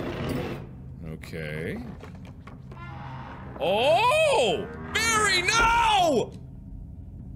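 A young man shouts and laughs loudly into a close microphone.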